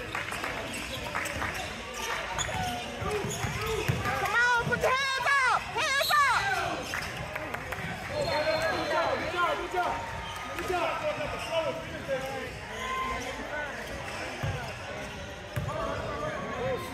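Young men shout and call out to each other across the echoing gym.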